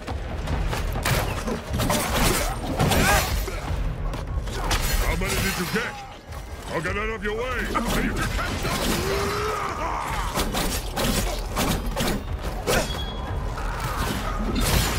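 Blows land with heavy thuds.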